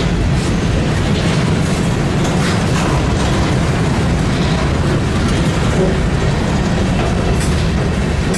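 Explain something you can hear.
Train wheels clack rhythmically over rail joints.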